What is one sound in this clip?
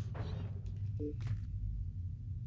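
A soft electronic chime sounds as a menu opens.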